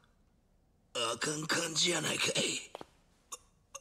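A man speaks in a strained, pained voice, close by.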